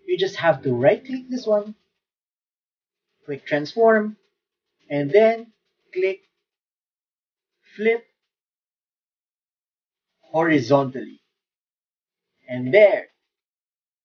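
A man speaks calmly in short phrases close to a microphone.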